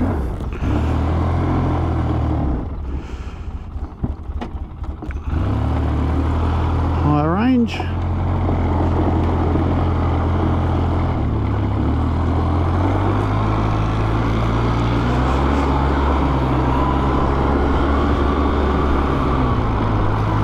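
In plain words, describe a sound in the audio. A quad bike engine hums and revs close by.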